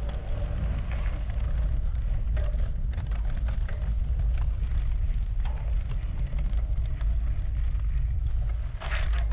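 A bicycle chain and frame rattle and click over bumps.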